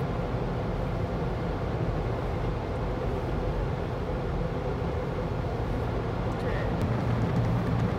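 Water sprays and drums against a car's windscreen.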